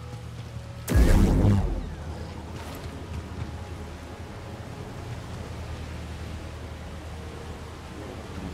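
A lightsaber hums steadily.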